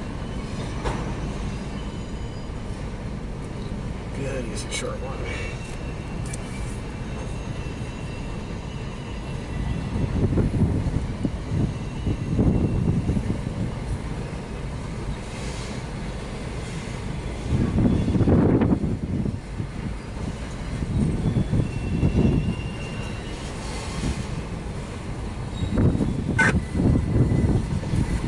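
A crossing bell rings steadily.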